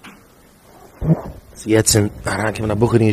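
A second man speaks closely into a microphone.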